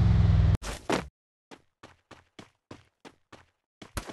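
Footsteps patter quickly on sand.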